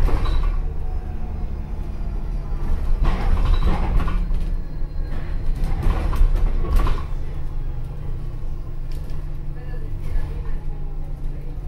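A bus interior rattles and creaks over the road.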